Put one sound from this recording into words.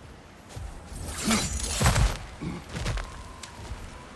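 Weapons clash in a short burst of fighting.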